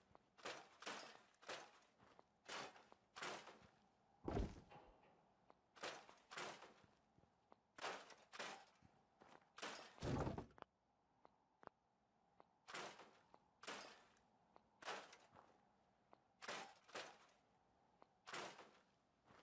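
Footsteps crunch through dry grass at a steady walking pace.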